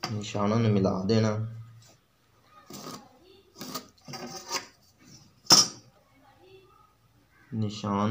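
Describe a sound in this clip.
A metal ruler clicks against a wooden table.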